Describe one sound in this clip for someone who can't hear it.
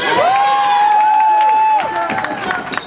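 A referee's whistle blows sharply in a large echoing gym.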